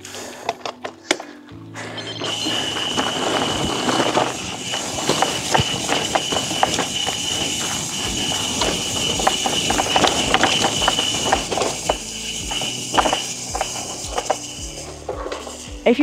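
A bicycle rolls bumpily over a grassy trail, rattling and clicking.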